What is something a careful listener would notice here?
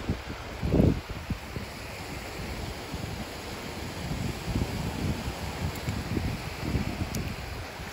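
Shallow water laps gently at the shore.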